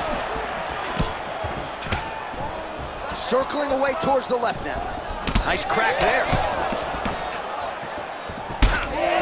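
Punches thud against a fighter's body.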